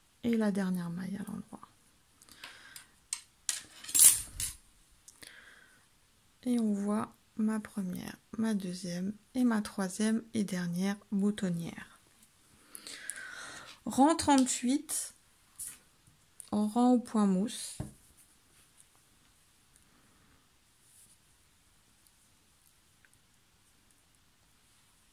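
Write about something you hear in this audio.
Knitting needles click and tap softly against each other.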